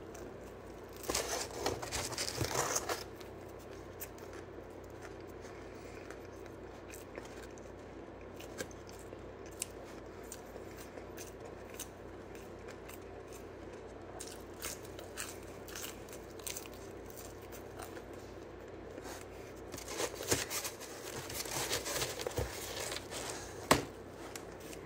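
A cardboard pizza box rustles and crinkles close by.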